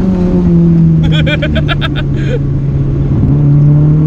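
A young man laughs loudly, close by.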